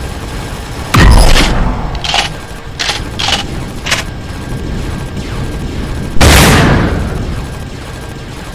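Explosions boom loudly and fade.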